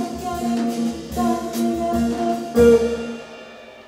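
A band plays a final chord that rings out and stops.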